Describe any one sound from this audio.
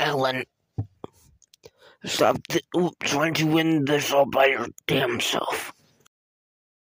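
A young man yells with animation close to the microphone.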